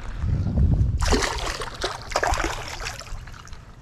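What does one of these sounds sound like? A fish splashes into shallow water and thrashes away.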